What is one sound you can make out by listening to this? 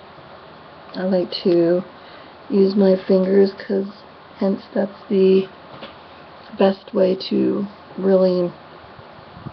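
A middle-aged woman talks calmly close to a microphone.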